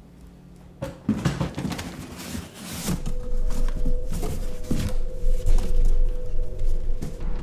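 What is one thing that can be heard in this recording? Cardboard box flaps rustle and scrape as hands fold them.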